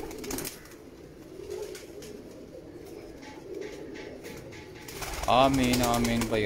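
Pigeons flap their wings in quick bursts.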